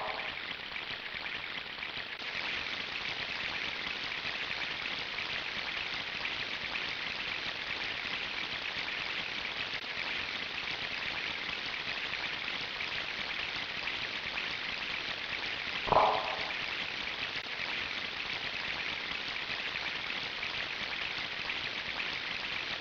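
Rushing water roars steadily.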